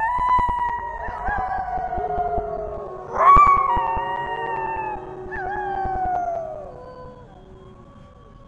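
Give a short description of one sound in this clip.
A wolf howls long and mournfully.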